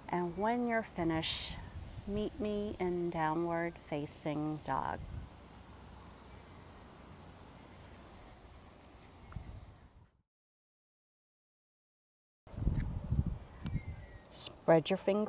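A woman speaks calmly and clearly into a close microphone, giving instructions.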